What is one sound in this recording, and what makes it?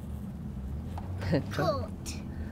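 A young girl talks cheerfully close by.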